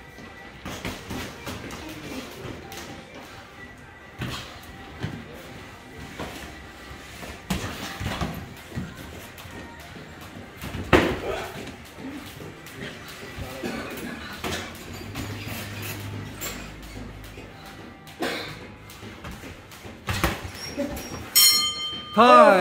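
Sneakers squeak and shuffle on a padded floor.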